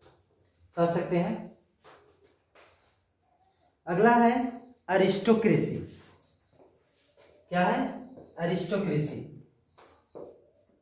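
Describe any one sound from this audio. A man lectures calmly and clearly, close by.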